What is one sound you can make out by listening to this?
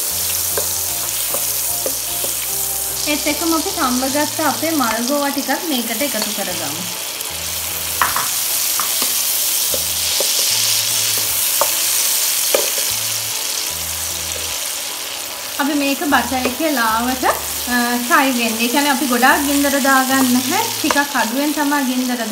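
A wooden spatula scrapes and taps against a pan.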